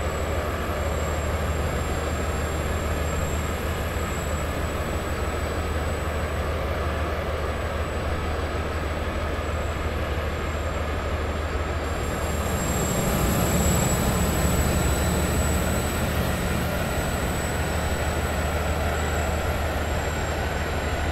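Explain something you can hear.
A train's motor hums steadily as it runs along the track.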